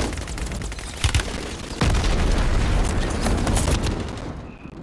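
Gunshots crack and thud nearby.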